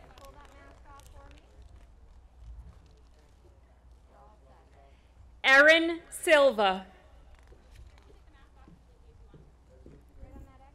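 A woman speaks through a loudspeaker outdoors, reading out names.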